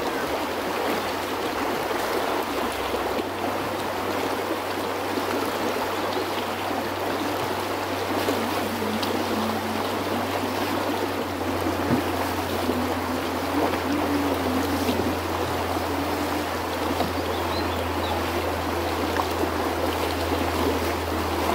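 A shallow river rushes and splashes over rocks nearby.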